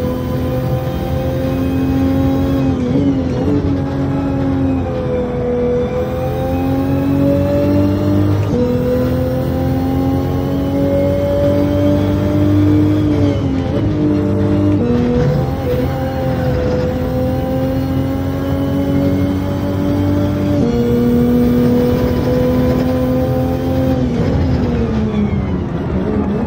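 A car engine roars loudly, revving up and dropping as gears shift.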